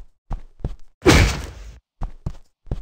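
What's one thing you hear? A bright magical whoosh bursts out and fades.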